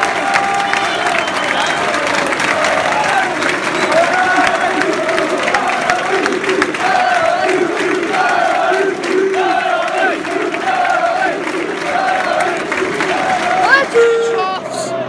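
A crowd claps along.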